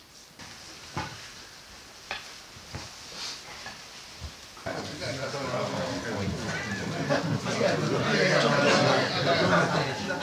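Gloved hands rustle and crunch through dry ash in a wooden tub.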